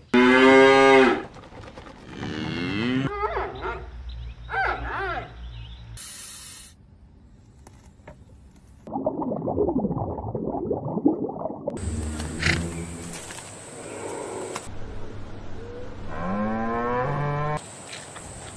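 A cow moos loudly and close by.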